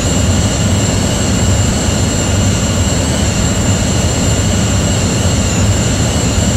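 Jet engines roar steadily in a continuous drone.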